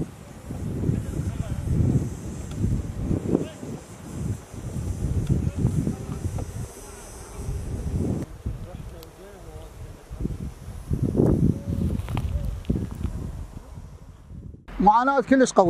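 Wind blows across open ground outdoors.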